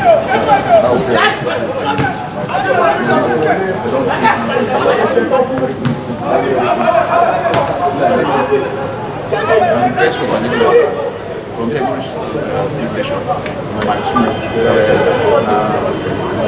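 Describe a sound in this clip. Young men shout and call out to each other across an open pitch.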